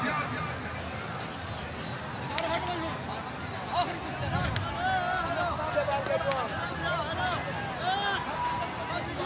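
A large crowd murmurs and calls out in the open air.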